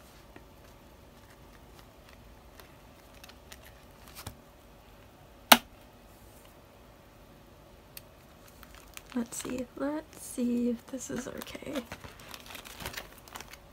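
Plastic sleeves crinkle and rustle as binder pages are turned.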